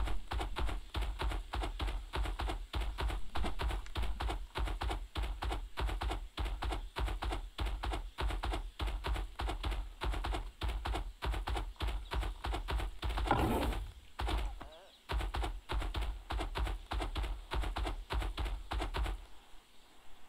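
Heavy footsteps of a large animal thud quickly and steadily at a run.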